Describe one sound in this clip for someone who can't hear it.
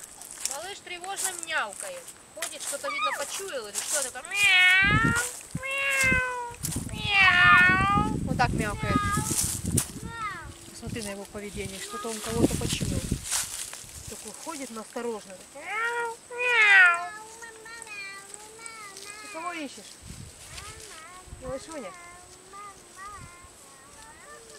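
Leafy branches rustle close by.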